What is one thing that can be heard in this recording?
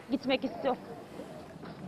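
A woman speaks loudly close by.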